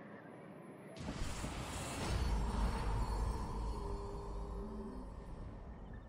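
A magical energy burst whooshes loudly with a deep rumble, then fades.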